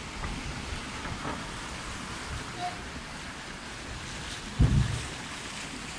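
Water splashes as a man wades and pushes a wooden boat.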